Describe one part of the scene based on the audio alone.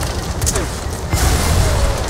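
A gunshot cracks nearby.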